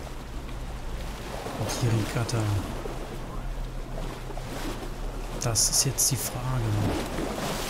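Waves splash against a moving boat.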